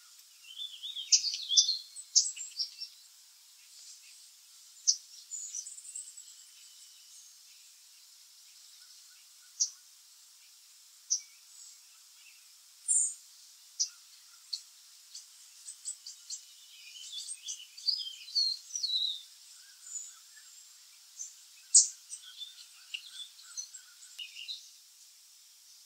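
Baby birds cheep shrilly and rapidly, close by.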